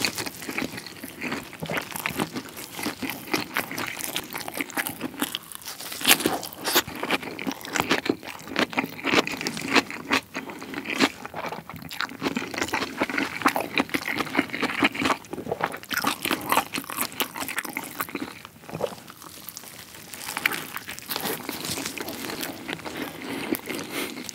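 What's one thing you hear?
A young man chews food loudly and wetly close to a microphone.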